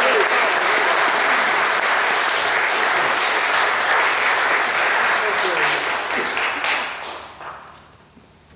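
A small string band plays a lively tune in an echoing hall.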